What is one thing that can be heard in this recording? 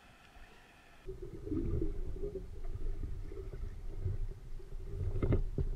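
Water churns and gurgles close by as a diver swims up.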